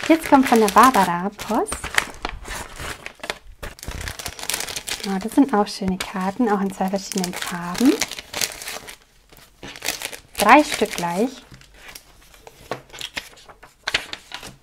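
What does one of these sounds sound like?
Card paper slides and rustles.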